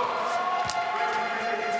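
A racket hits a shuttlecock with a sharp smack.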